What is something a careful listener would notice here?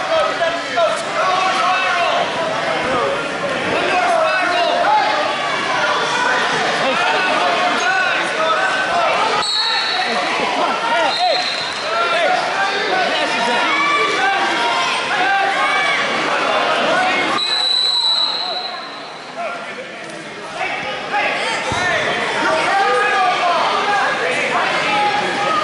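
A crowd of people chatters and calls out throughout a large echoing hall.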